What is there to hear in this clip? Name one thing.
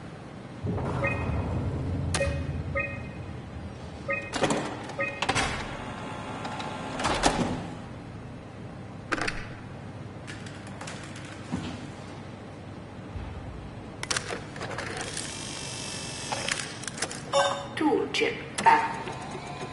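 Short electronic beeps sound as menu options are picked.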